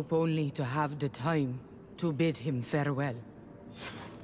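A woman speaks calmly and close up.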